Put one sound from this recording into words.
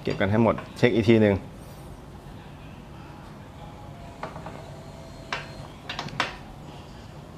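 A socket wrench ratchets as a bolt is tightened.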